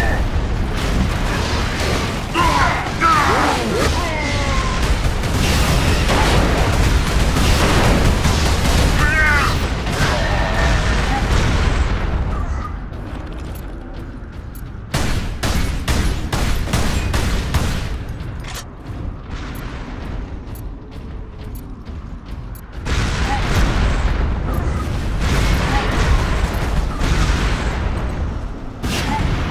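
A jet pack roars with a loud rushing blast.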